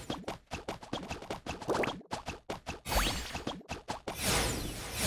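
Quick, light cartoon footsteps patter along.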